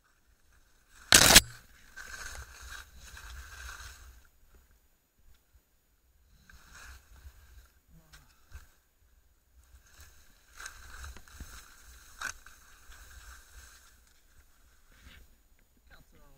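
Skis swish and hiss through deep powder snow in bursts.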